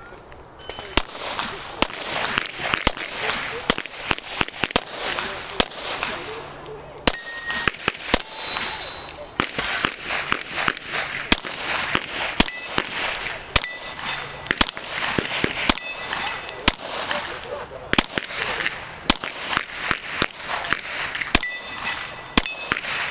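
A pistol fires rapid shots in quick bursts, each shot sharp and loud.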